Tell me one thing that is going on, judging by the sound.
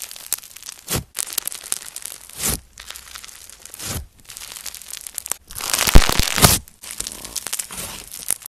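Fingers press and squish crunchy foam slime up close, with crackling and popping.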